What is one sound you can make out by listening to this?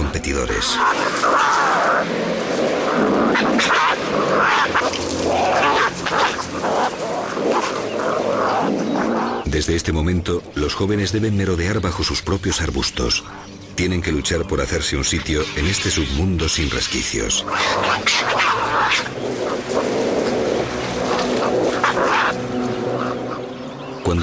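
Small animals chatter and squeal while tearing at a carcass.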